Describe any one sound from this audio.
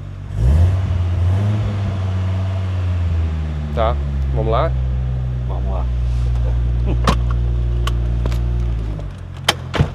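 A car engine rumbles steadily close by.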